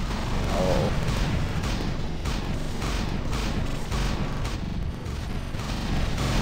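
Heavy metal footsteps thud steadily as a large robot walks.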